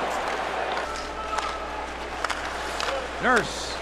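Hockey sticks clack against a puck on the ice.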